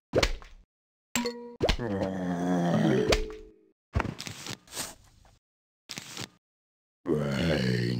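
Coins clink as they drop.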